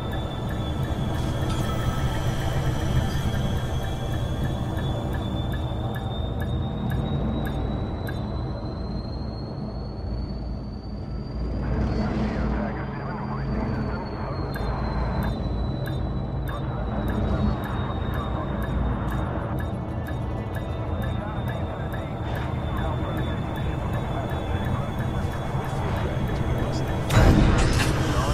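A spaceship engine hums and rumbles steadily.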